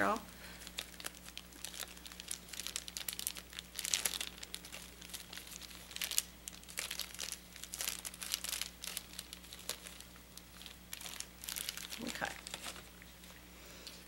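Plastic tubing and wrapping crinkle and rustle as they are handled.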